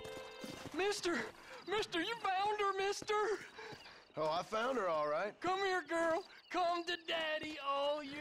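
A man shouts excitedly, heard up close.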